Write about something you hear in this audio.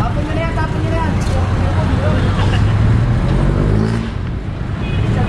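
Several men talk loudly nearby outdoors.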